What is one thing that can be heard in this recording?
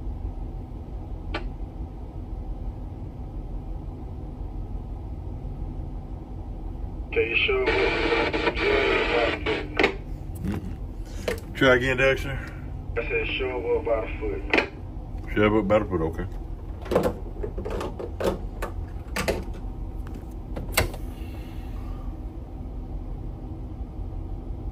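A boat's engine rumbles low and steady.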